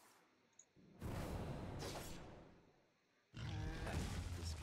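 A game effect bursts with a loud whooshing blast.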